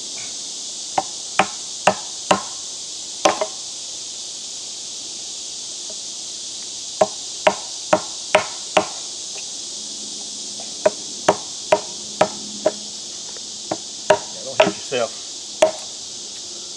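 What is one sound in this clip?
A hammer taps a chisel into wood in short bursts of sharp knocks.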